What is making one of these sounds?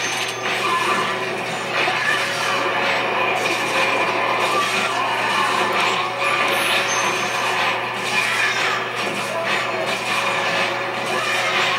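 Monstrous creatures screech and snarl.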